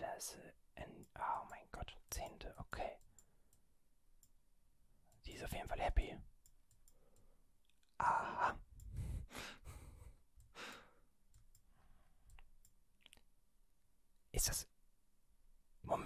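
A young man talks in short bursts close to a microphone, with pauses in between.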